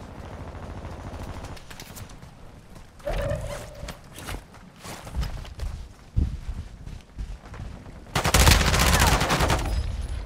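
Footsteps crunch on rough ground at a run.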